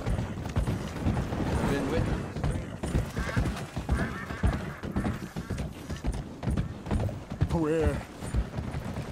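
A horse's hooves clop steadily on wooden boards.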